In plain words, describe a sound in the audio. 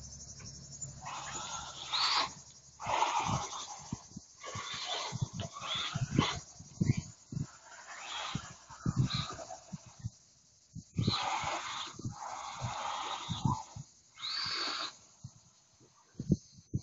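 Toy car tyres skid and scatter gravel on dirt.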